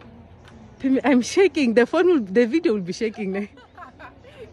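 A young woman speaks excitedly close by.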